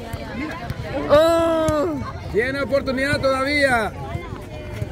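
Children shout and cheer loudly outdoors.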